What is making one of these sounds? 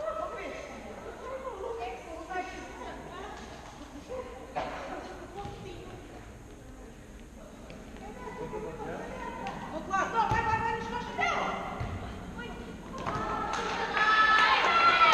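Young men shout during play in a large echoing hall.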